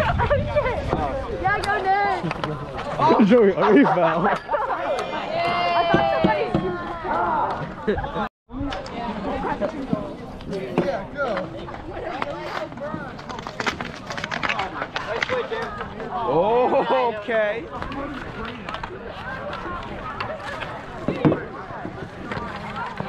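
A crowd of people shout and cheer outdoors.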